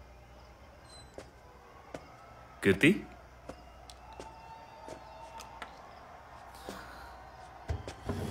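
A man's footsteps sound on a hard floor.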